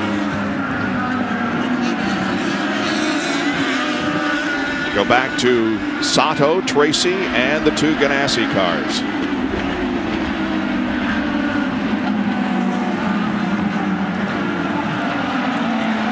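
Racing car engines whine loudly at high speed.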